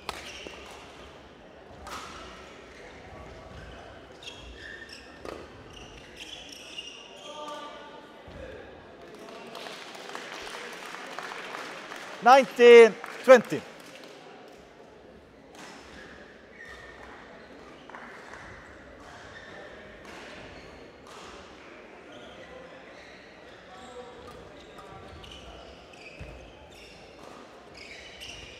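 A shuttlecock is struck sharply by rackets in a large echoing hall.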